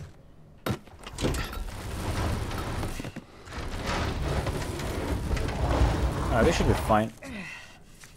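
Heavy wooden furniture scrapes across a wooden floor.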